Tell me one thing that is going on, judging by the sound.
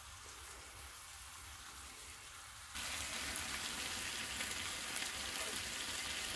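Food sizzles and crackles in a frying pan.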